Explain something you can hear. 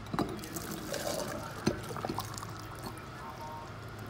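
Hot water pours into a metal bottle.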